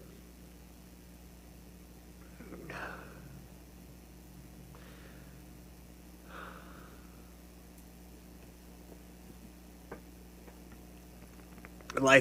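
A man sobs and sniffles quietly.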